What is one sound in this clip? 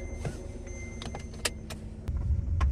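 A seatbelt buckle clicks.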